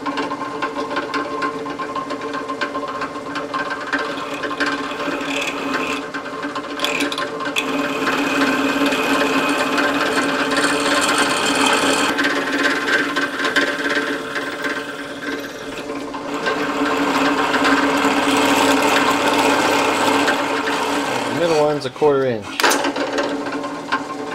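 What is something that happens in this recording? A milling machine hums steadily.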